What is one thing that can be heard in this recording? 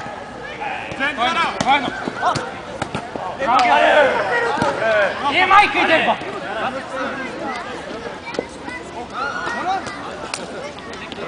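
Several men shout to each other outdoors.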